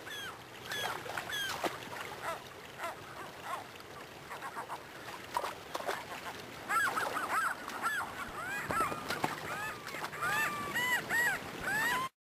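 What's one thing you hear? A river rushes steadily over rocks.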